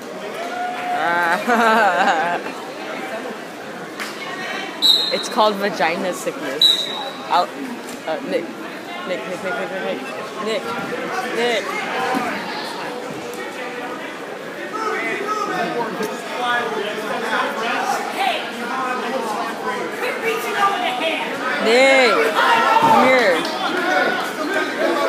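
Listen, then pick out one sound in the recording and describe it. Spectators shout and cheer loudly.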